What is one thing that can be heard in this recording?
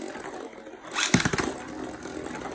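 A ripcord zips as spinning tops are launched into a plastic dish.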